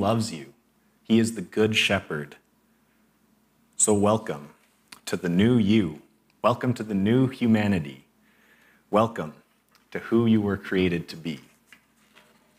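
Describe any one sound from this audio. A young man speaks calmly and warmly into a microphone.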